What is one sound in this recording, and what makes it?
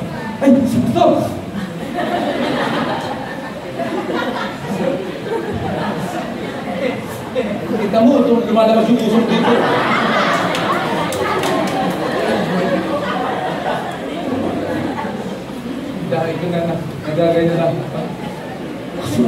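A middle-aged man speaks with animation through a microphone and loudspeakers in an echoing hall.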